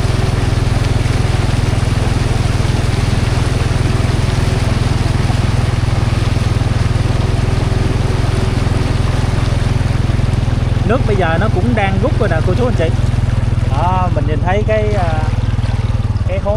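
Water swishes and splashes under wheels.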